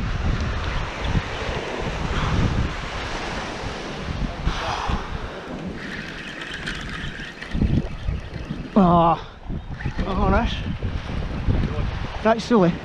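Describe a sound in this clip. Wind blows across the microphone in gusts.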